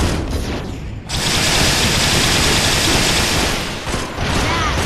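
An electric blast crackles and roars.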